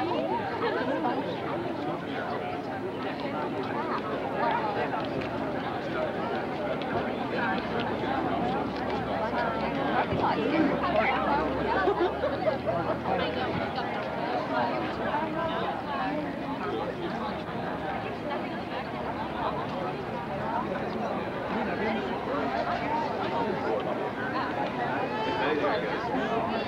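A crowd of young people chatter all around, close by, outdoors.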